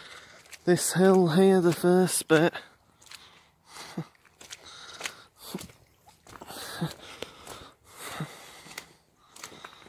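Footsteps squelch on a wet, muddy path.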